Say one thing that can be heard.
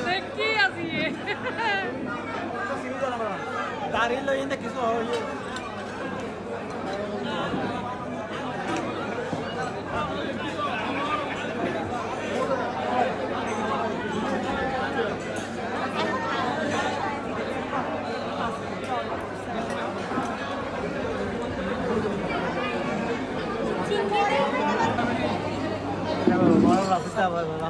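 Many men and women talk and chatter at once nearby.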